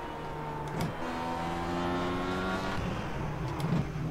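A race car engine revs down as the car slows.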